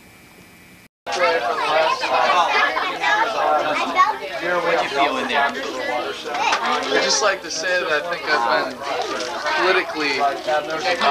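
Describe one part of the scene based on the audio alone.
A group of people chat and laugh close by.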